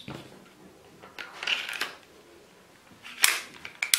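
A pistol slide snaps onto its frame with a click.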